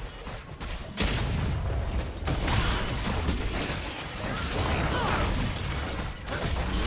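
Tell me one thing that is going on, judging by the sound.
Fantasy battle sound effects clash and whoosh in a fight.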